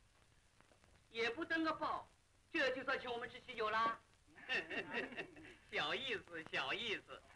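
A middle-aged woman talks cheerfully nearby.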